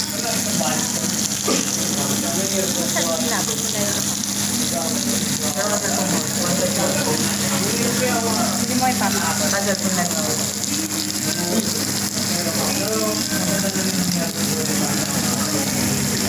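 Food sizzles on a hot iron plate.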